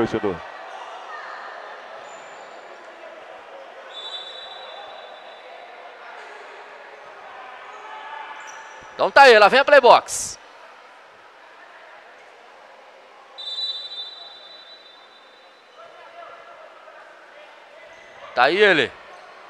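A crowd murmurs softly in an echoing hall.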